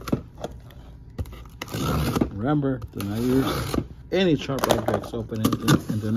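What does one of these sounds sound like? A blade slices through packing tape on a cardboard box.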